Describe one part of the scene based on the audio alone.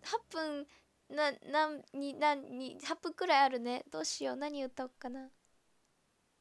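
A young woman talks in a light, animated voice close to the microphone.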